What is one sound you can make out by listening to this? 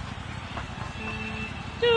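An electronic countdown beep sounds.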